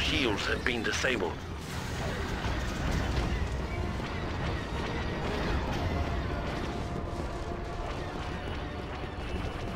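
Armoured footsteps thud on a metal floor.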